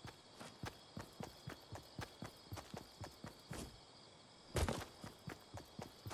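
Footsteps thud quickly and steadily on grass and stone.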